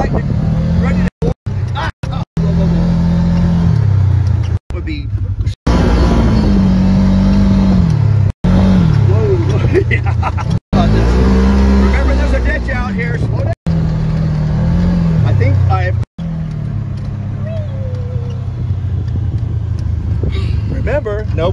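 An off-road vehicle's engine drones loudly, rising and falling in pitch as it speeds up and slows down.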